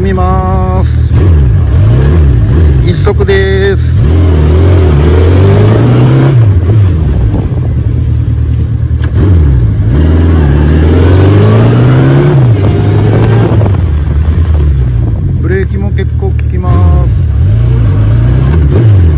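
A Honda CB750 inline-four motorcycle engine revs up and drops back again and again.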